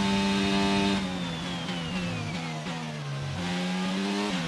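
A racing car engine drops sharply in pitch as the car brakes hard.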